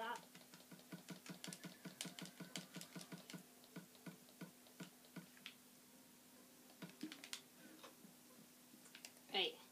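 Game menu clicks tick quickly, one after another.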